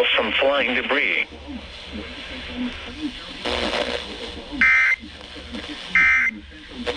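Music plays from a small radio speaker.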